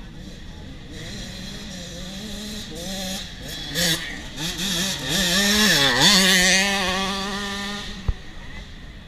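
A dirt bike engine revs loudly as it approaches, passes close by and fades away.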